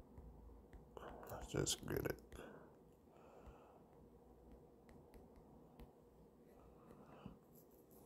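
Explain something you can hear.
Keys on a phone keyboard click softly as letters are typed.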